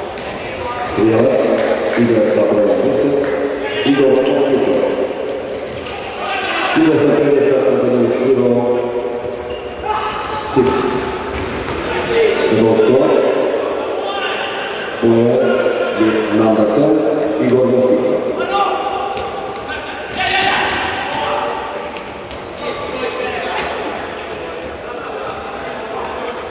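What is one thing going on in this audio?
A crowd of spectators cheers in an echoing indoor hall.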